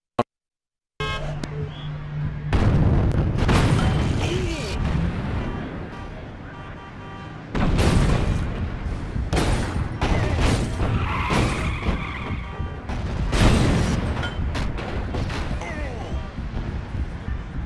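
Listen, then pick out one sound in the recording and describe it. Heavy footsteps thud and crash loudly.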